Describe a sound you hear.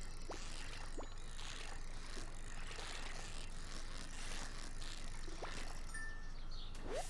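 A fishing reel whirs as a line is wound in.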